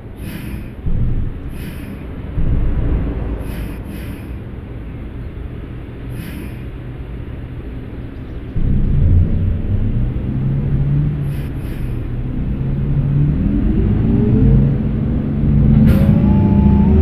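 A bus engine rumbles and slowly rises in pitch as it speeds up.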